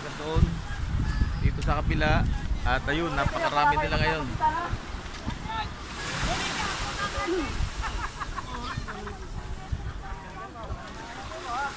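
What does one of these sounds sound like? Waves wash gently onto a beach.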